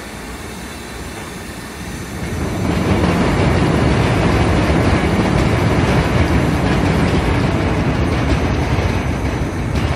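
Conveyor rollers rumble and clatter steadily.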